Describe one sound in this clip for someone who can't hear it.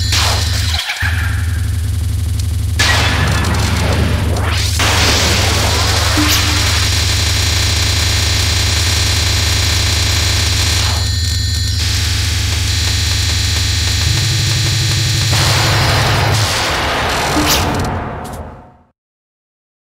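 Fast electronic game music plays with a driving beat.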